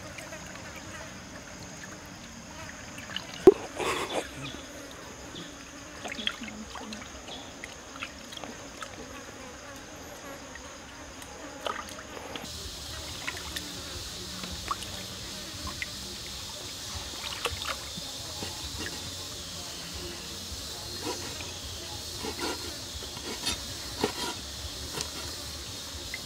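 A stream flows and trickles gently nearby.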